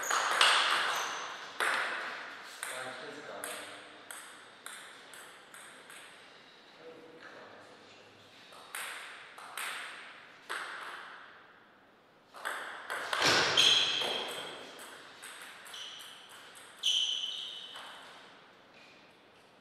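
A ping-pong ball clicks sharply off paddles and the table in an echoing hall.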